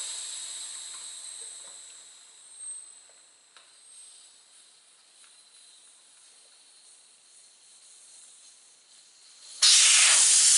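A metal tool scrapes and clicks against a tyre rim.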